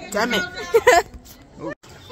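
A young girl laughs loudly close by.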